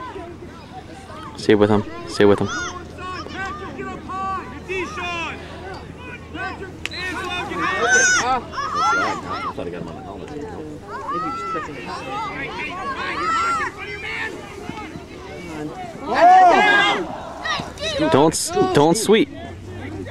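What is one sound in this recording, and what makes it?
Several spectators shout and cheer loudly outdoors.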